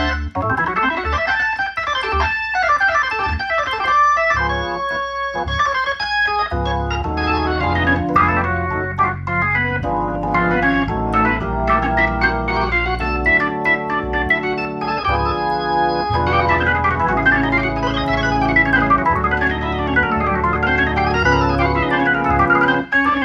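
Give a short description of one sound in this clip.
An organ plays fast, lively runs and chords.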